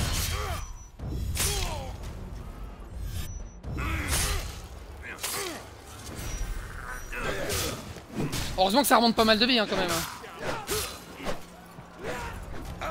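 Men grunt and shout with effort during a fight.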